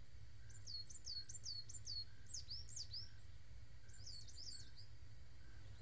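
Birds chirp outdoors.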